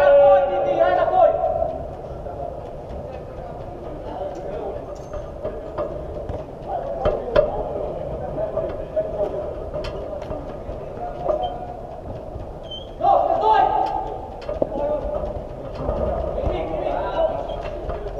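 Men shout to each other across a large echoing indoor pitch.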